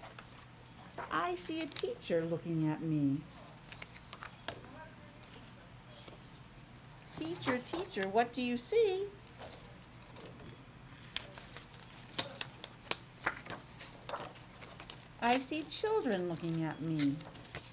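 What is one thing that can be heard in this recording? A middle-aged woman reads aloud through a face mask, close to the microphone.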